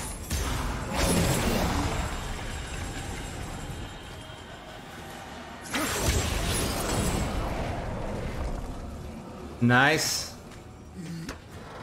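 Magical energy bursts with a sparkling whoosh.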